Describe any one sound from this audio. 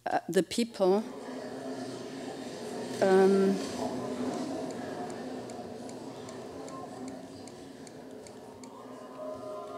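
A crowd murmurs and chatters indoors.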